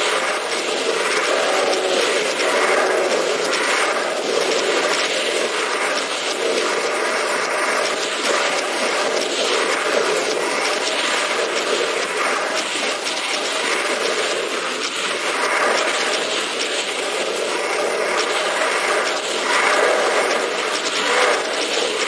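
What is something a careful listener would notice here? A plasma gun in a video game fires rapid bursts.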